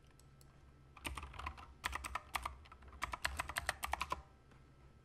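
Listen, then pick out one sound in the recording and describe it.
Keys on a keyboard click rapidly as someone types.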